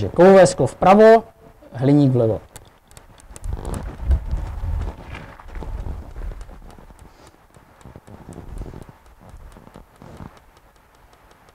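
A man speaks loudly with animation nearby, then talks more quietly.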